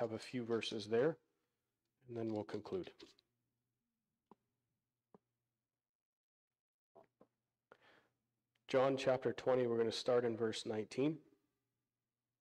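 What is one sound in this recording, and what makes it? A man speaks calmly into a microphone, heard through loudspeakers in a large room.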